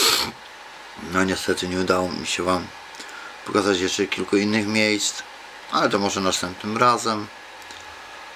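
A man speaks close to a microphone, calmly and earnestly.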